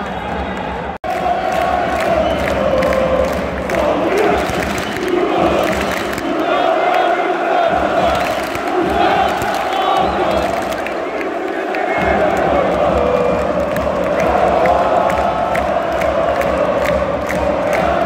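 A crowd of fans chants loudly in unison.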